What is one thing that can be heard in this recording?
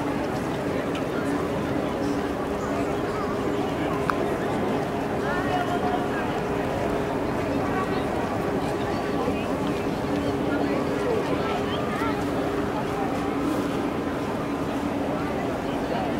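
A crowd of people chatters in a wide open outdoor square.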